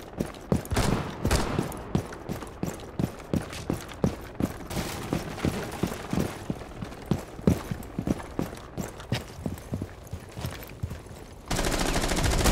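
Quick footsteps thud steadily on a hard floor.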